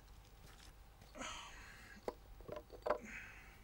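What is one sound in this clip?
A stone knocks and scrapes against wood as a hand lifts it.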